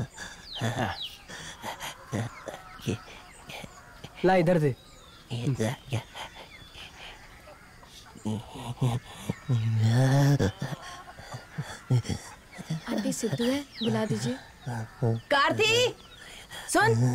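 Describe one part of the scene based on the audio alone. Two young men talk with animation close by.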